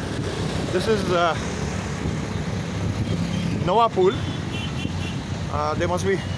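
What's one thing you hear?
Motorbike engines hum steadily nearby.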